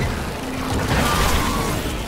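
An explosion bursts with a loud crackle.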